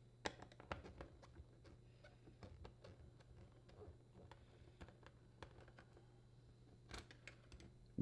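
A screwdriver scrapes and clicks against plastic.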